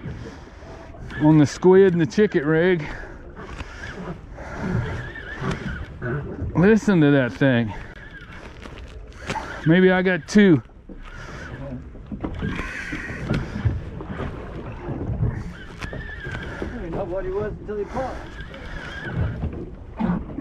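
Small waves slap against the side of a boat.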